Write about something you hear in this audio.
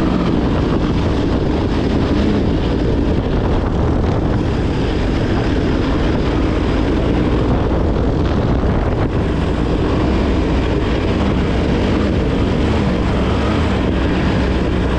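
A motorbike engine drones steadily up close.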